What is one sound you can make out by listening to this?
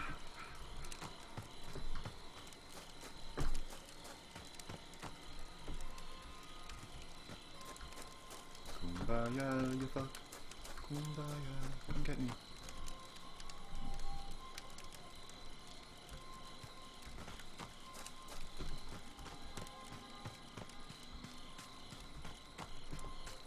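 Footsteps run over leaves and ground.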